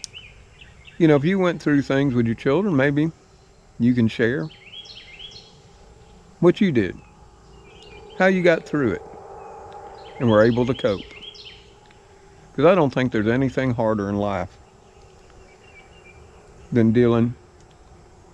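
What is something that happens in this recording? An elderly man speaks calmly in short bursts, close by.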